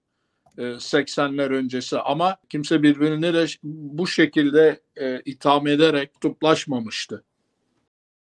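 An older man speaks emphatically over an online call.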